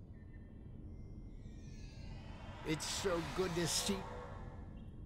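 A transporter hums and shimmers.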